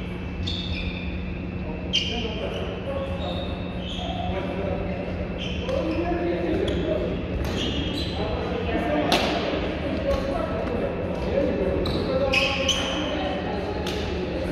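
Rackets strike a shuttlecock again and again in a large echoing hall.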